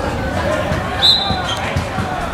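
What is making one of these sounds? A referee's whistle blows a short blast.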